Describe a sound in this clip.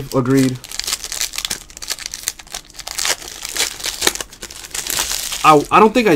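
Foil wrapping crinkles and tears as hands open a pack.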